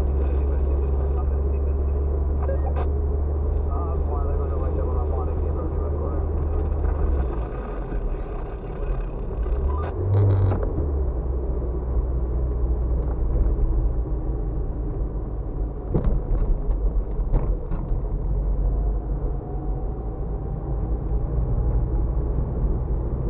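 Tyres rumble on a rough road.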